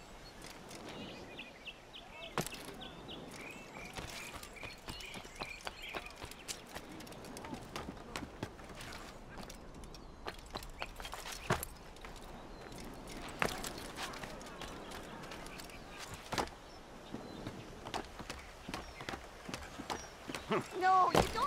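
Hands and feet thud and scrape on stone during climbing.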